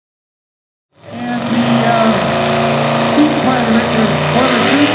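A pulling tractor's engine rumbles and revs up close.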